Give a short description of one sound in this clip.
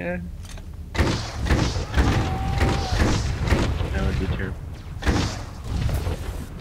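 Blaster shots crackle and thud in quick bursts.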